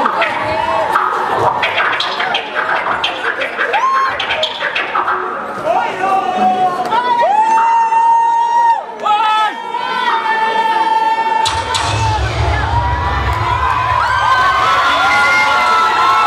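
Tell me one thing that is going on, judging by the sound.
A live band plays music loudly through loudspeakers.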